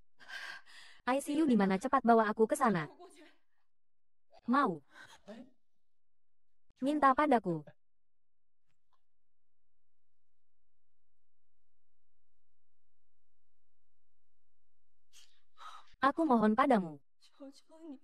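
A young woman speaks in an upset, pleading voice.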